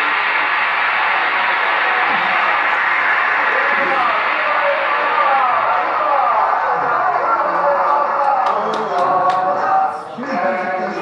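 A large crowd cheers and applauds in a roaring wash of noise.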